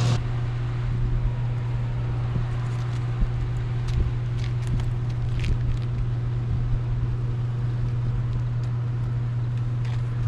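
A plastic cover scrapes and knocks.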